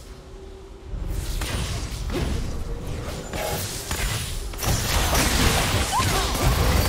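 Magic blasts and sparkling effects burst in a busy fight.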